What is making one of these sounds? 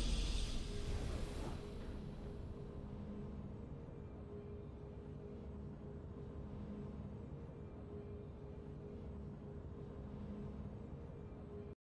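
Triumphant game music plays with a bright swell at the start, then settles into a low steady hum.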